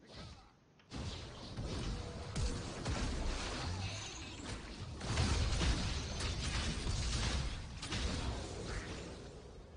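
Spells blast and weapons clash loudly in a video game fight.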